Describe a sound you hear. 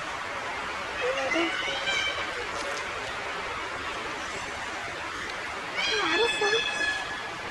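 A woman talks on a phone close by.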